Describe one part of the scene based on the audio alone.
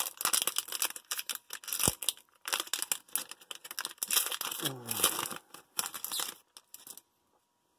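Hands crinkle and tear open a plastic foil wrapper.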